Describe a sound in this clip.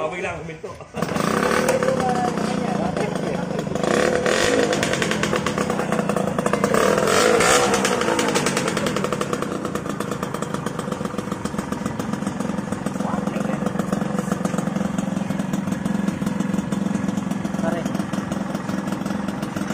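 A small motorcycle engine idles loudly with a rough, popping exhaust burble, revving up now and then.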